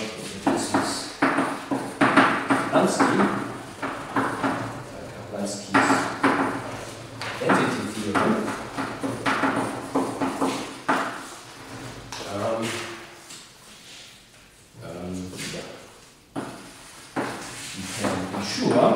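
An elderly man lectures calmly into a microphone.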